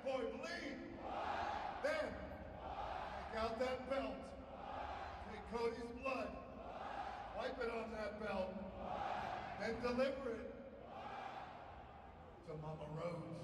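A man speaks into a microphone over loudspeakers in a large echoing arena.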